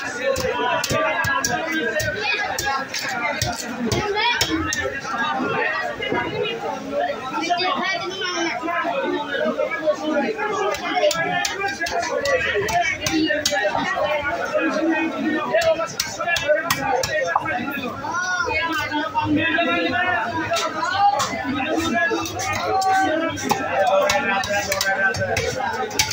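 Fish flesh squelches wetly as it is sliced against a blade.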